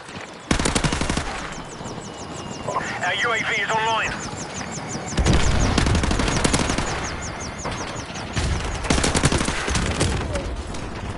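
Rapid gunfire rattles in bursts close by.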